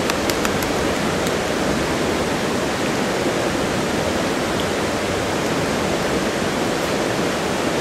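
A river rushes steadily over rocks nearby.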